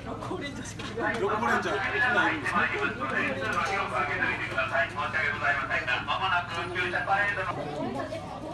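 A man speaks with animation into a microphone, heard through a loudspeaker outdoors.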